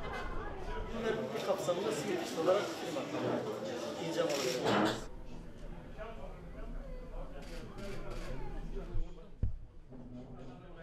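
Several men and women talk at once around the microphone, with animation.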